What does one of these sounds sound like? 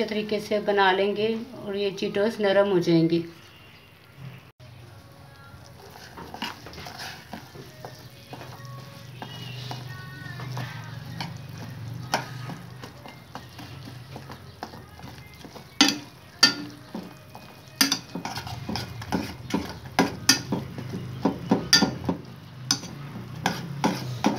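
Food sizzles and bubbles in a pot.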